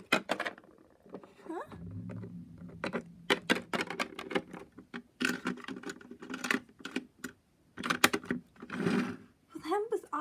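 Small plastic toys click and knock against each other.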